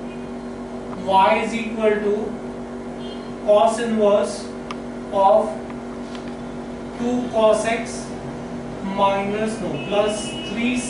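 A man speaks calmly, like a teacher explaining.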